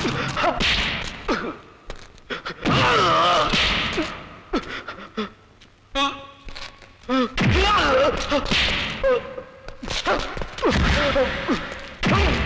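Men shout and grunt loudly.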